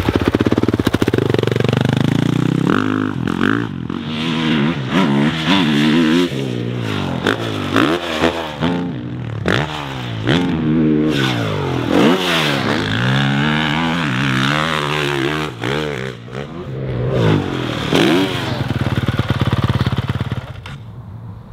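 A motorbike engine revs hard, rising and falling in pitch.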